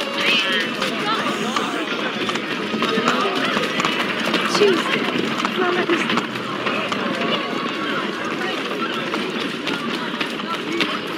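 Footsteps hurry over cobblestones.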